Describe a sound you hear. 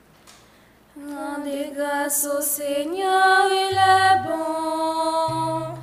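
Two young women sing together into a microphone in an echoing hall.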